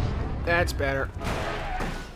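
A heavy body slams onto pavement with a dull thud.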